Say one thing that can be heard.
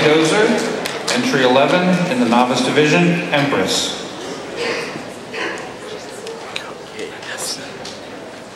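A man speaks theatrically through a microphone in a large echoing hall.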